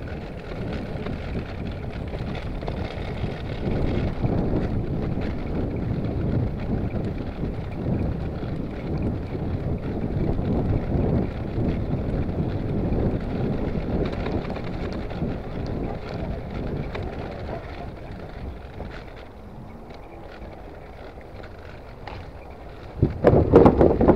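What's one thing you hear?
Bicycle tyres roll on the paved path.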